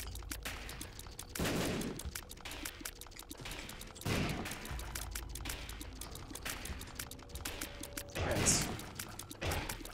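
Rapid tear shots pop and splat in a video game.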